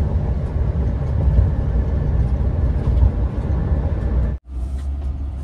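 Tyres roar on a highway as a vehicle drives at speed.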